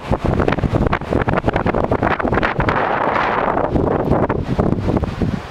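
Strong wind gusts roar and buffet outdoors.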